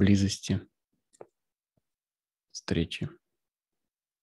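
A man speaks a few short words over an online call.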